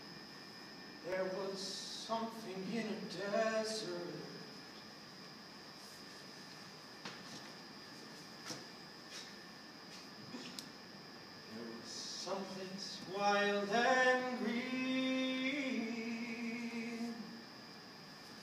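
A young man talks calmly in a large echoing room.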